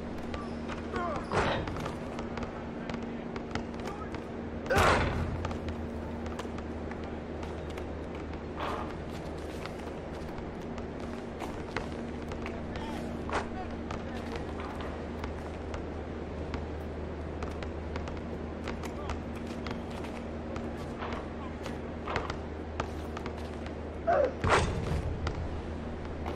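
Sneakers squeak on a court.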